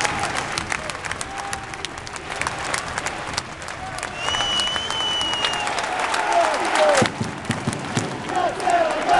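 A crowd claps and cheers loudly in a large echoing arena.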